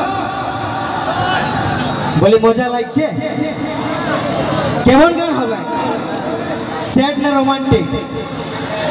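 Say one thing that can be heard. A man sings loudly through a microphone over a loudspeaker system.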